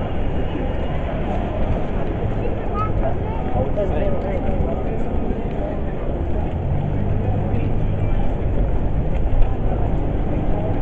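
Men and women talk in the distance.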